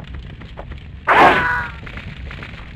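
A sword slashes and strikes with a sharp, ringing hit.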